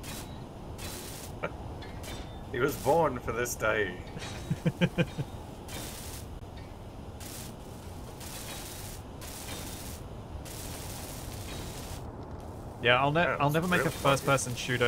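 A welding torch crackles and hisses in steady bursts.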